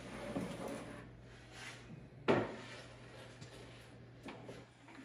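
A wooden board slides across a metal surface.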